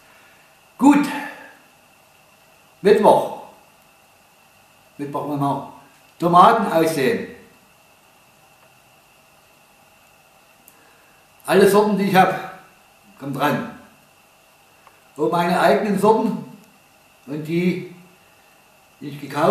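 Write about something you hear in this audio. An elderly man speaks calmly close by, in short bursts with pauses.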